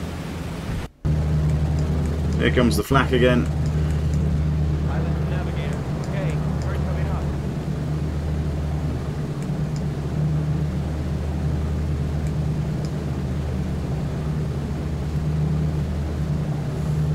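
Propeller engines drone steadily and deeply.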